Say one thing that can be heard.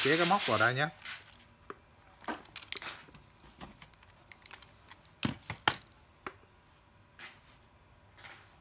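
Hands handle a plastic power tool, its casing knocking and clicking.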